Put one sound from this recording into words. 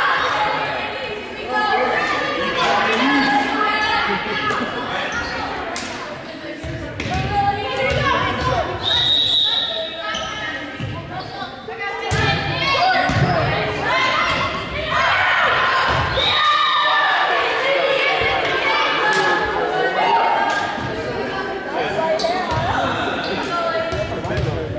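Young women call and shout to each other in a large echoing gym.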